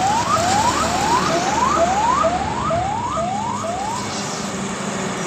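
Vehicles drive along a highway in the distance with a low rumble.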